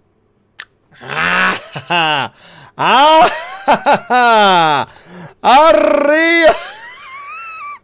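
A young man shouts with excitement close to a microphone.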